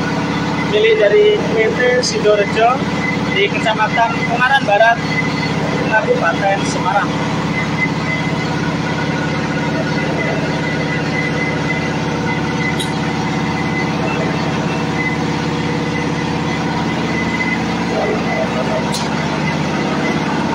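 A machine drones steadily with a low hum.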